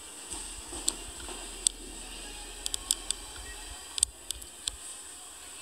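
A horse's hooves thud and clatter on soft arena footing.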